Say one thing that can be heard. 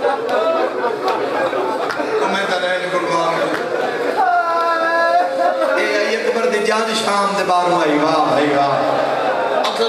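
A young man speaks passionately into a microphone, his voice loud and echoing through a loudspeaker.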